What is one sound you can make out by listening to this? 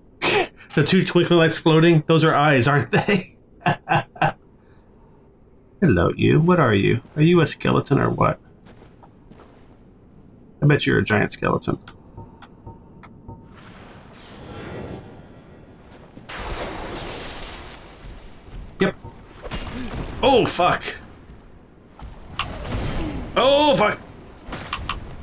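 A man talks with animation into a nearby microphone.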